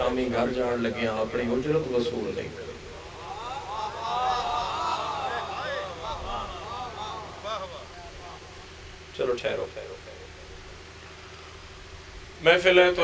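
A young man speaks with feeling through a microphone and loudspeakers, in a reverberant space.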